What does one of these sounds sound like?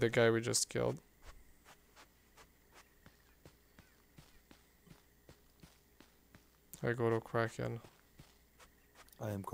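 Footsteps pad steadily over grass.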